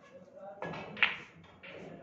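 Snooker balls clack together on a table.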